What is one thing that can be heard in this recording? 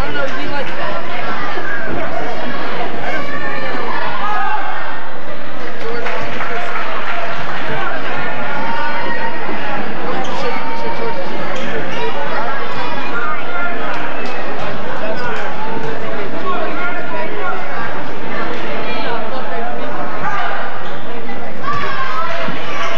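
A crowd of spectators chatters and calls out throughout, echoing in a large hall.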